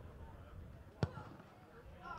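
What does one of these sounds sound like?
A football is kicked hard.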